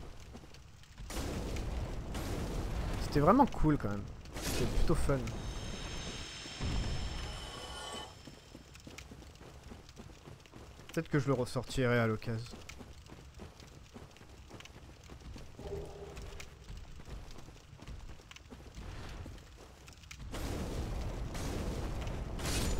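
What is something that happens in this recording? Heavy weapon blows thud and clang in a fight.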